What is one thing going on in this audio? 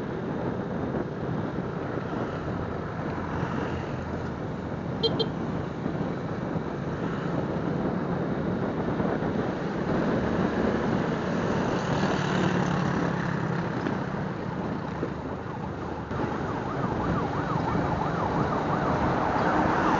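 Motorcycles pass nearby with buzzing engines.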